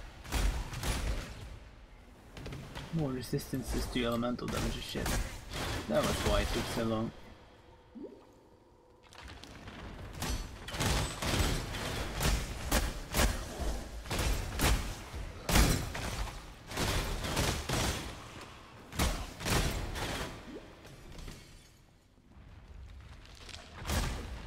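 Magic spells crackle and burst in rapid bursts.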